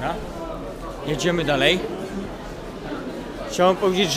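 A crowd of men and women chatter nearby in an echoing hall.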